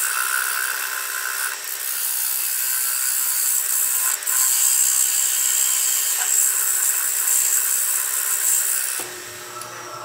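A lathe gouge scrapes and shaves loudly against spinning wood.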